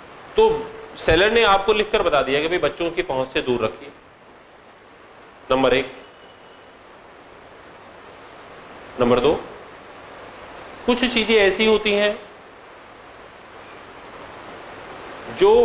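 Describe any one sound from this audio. A man lectures with animation, close to a clip-on microphone, pausing between phrases.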